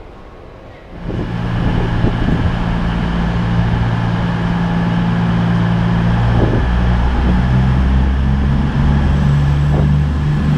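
A train engine rumbles steadily as a train rolls slowly in.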